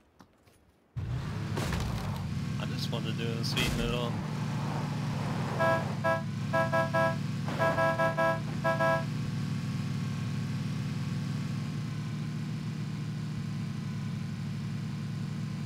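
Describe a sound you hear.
A vehicle engine starts up and rumbles steadily while driving.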